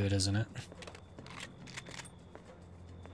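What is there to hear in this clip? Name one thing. A rifle is reloaded with quick metallic clicks.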